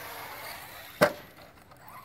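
A toy car's wheels clatter on hard ground.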